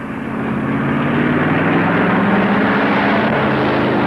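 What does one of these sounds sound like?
A car passes close by with a rushing whoosh.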